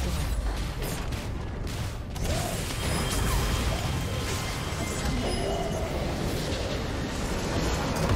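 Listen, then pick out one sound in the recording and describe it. Magical spell effects crackle and whoosh in quick bursts.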